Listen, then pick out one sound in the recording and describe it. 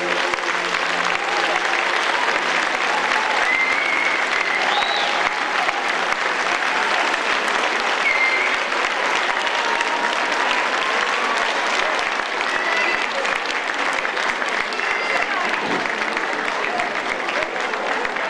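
Children cheer and shout with excitement.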